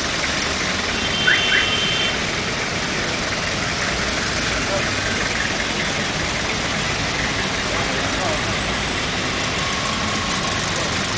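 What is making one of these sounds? Heavy city traffic rumbles and hisses steadily outdoors.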